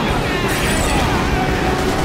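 Flames roar from a fiery explosion.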